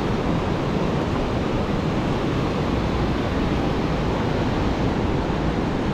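Wind blows steadily across the open air.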